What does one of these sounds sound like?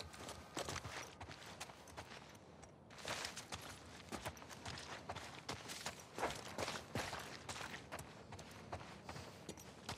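Footsteps scuff and tap quickly across a hard floor.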